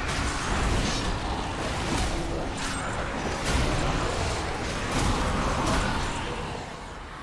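Magic blasts crackle and boom during a fierce fight.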